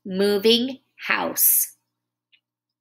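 A woman speaks calmly and closely over a computer microphone.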